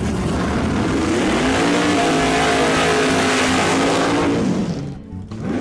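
Tyres screech loudly as a car spins its wheels.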